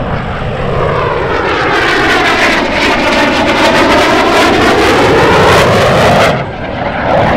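A passing fighter jet's roar sweeps down and back up in pitch as it rushes close by.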